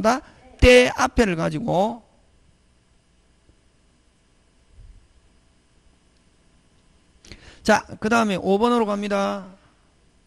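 A middle-aged man lectures with animation through a microphone.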